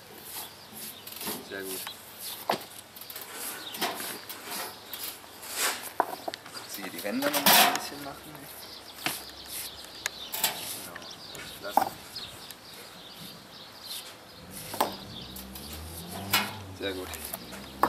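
A trowel taps and scrapes on stone blocks.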